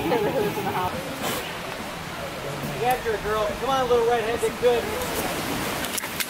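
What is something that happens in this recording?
Several men and women talk and call out nearby outdoors.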